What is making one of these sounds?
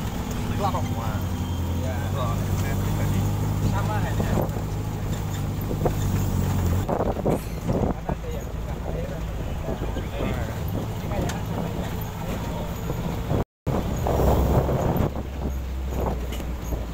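An open off-road jeep engine drones while driving on a rough gravel track.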